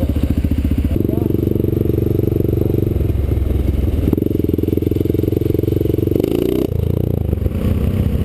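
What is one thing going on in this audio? A dual-sport motorcycle rides along a road.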